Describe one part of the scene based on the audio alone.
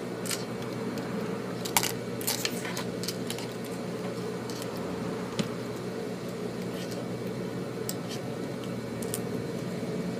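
Fingers handle a sewing machine's needle with small, light clicks.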